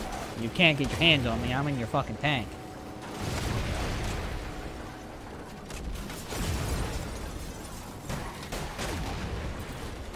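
A tank cannon fires with loud bangs.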